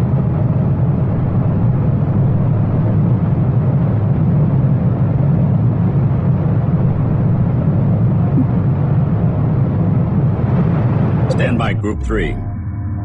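Spaceship engines hum with a low, steady rumble.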